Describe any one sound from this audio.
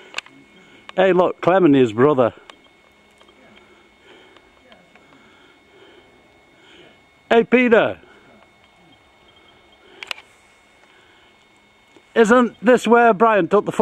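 A man calls out loudly nearby in short bursts.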